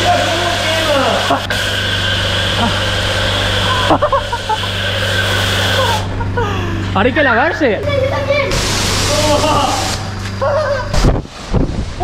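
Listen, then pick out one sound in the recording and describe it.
Children shout and laugh excitedly close by.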